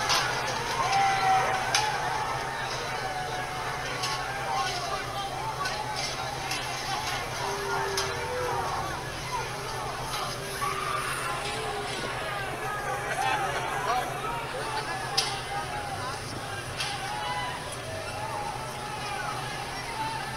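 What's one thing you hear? A crowd of people talks and shouts outdoors.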